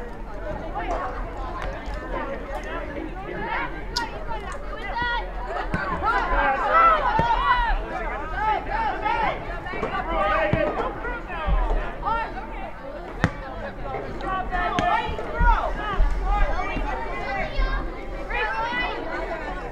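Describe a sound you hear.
Young women shout and call to each other across an open field outdoors.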